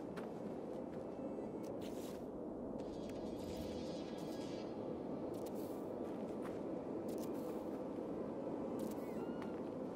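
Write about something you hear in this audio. Short menu clicks and beeps sound now and then.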